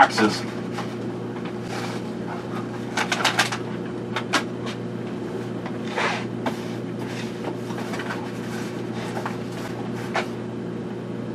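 Objects clatter and knock as a man handles them.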